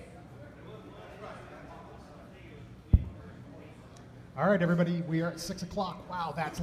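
A crowd murmurs quietly in a large room.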